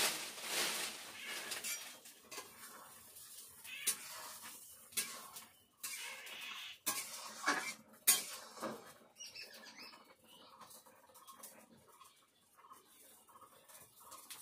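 A metal utensil scrapes and clinks against a pan.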